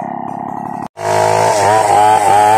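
A chainsaw cuts through a log with a loud whine.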